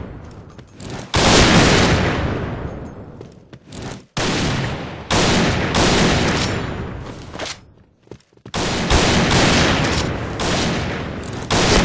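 A bolt-action sniper rifle fires single shots.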